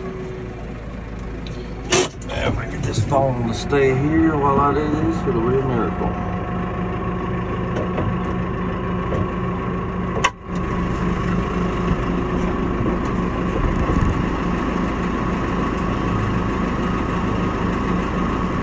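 A tractor engine runs with a steady low rumble.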